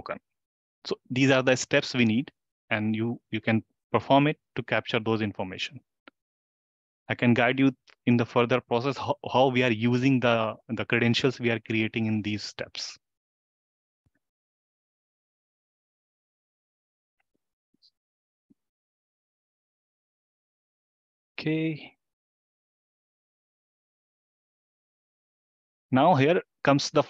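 A man speaks calmly into a microphone, explaining step by step, with pauses.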